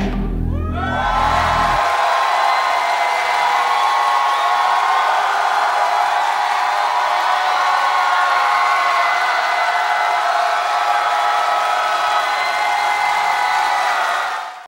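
Upbeat pop music plays loudly, its deep beat dropping out after a moment.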